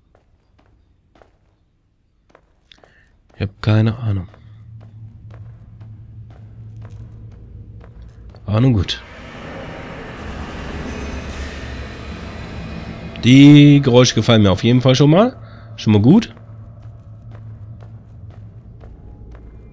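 Feet clank on the rungs of a metal ladder as a man climbs down.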